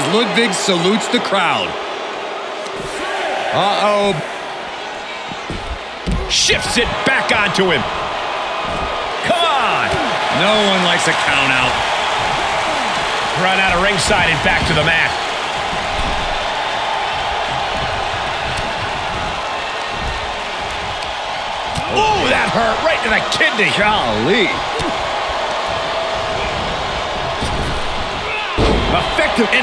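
A large crowd cheers and roars steadily.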